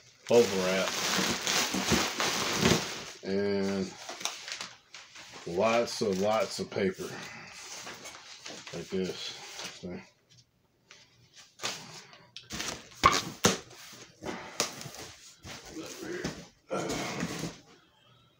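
Bubble wrap crinkles as a man handles it.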